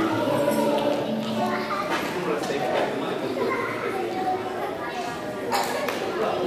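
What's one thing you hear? A group of children sings together in a large echoing hall.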